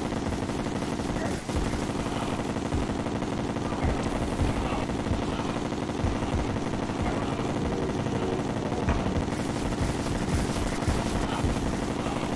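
Game magic blasts and zaps crackle rapidly.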